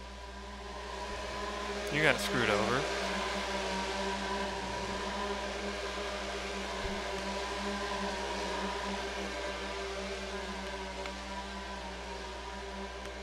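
A roller coaster train rattles along a wooden track.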